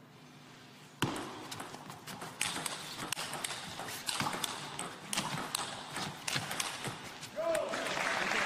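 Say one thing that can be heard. A table tennis ball clicks back and forth between paddles and table in a quick rally.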